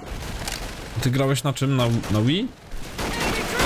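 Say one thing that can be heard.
A young man talks with animation into a microphone.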